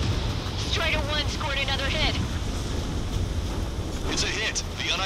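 A jet plane explodes and burns with a loud rumble.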